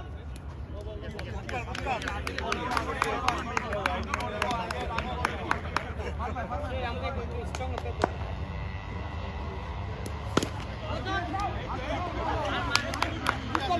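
A crowd of men and boys chatters and calls out outdoors.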